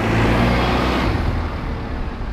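A bus drives past close by.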